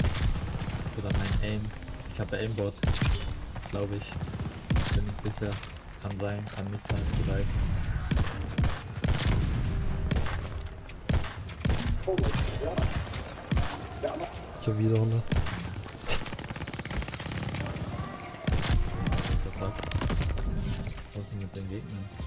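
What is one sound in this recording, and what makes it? Rifle shots crack loudly, one after another.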